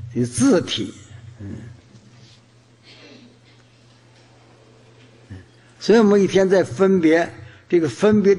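An elderly man speaks slowly and calmly into a microphone, with pauses.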